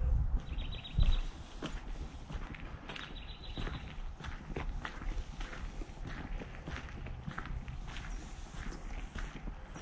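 Footsteps crunch on a dry dirt path.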